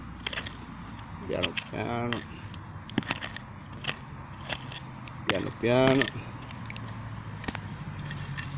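A small pick strikes and scrapes at stony soil in short, sharp knocks.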